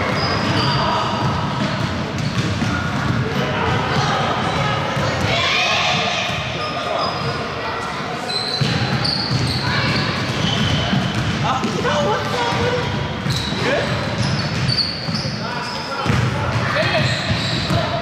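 Sneakers squeak on a wooden court in a large echoing hall.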